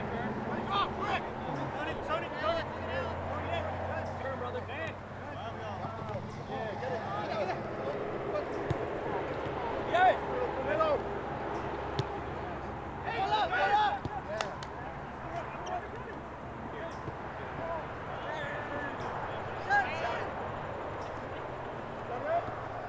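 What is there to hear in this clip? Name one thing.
Young men shout and call to each other outdoors, distant and echoing.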